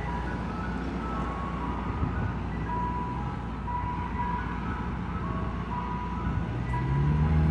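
An ice cream truck plays a tinkling chime melody out in the street.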